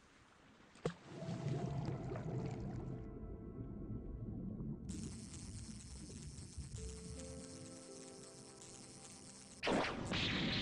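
Game music plays with a steady tune.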